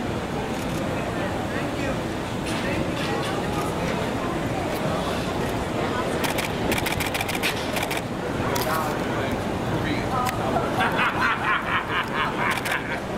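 Several men and women talk in a lively crowd nearby.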